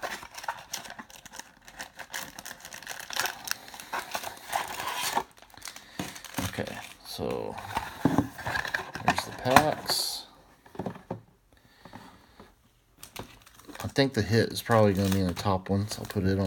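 Trading cards rustle and slap together as they are handled.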